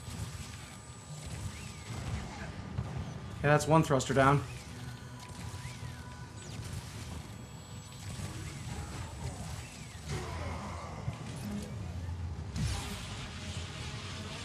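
Laser beams fire with a buzzing hum.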